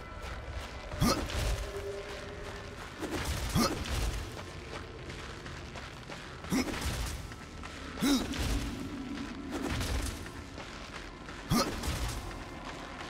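A sharp whoosh sweeps past as a figure dashes forward.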